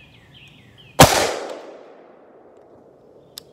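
A gunshot cracks loudly and echoes outdoors.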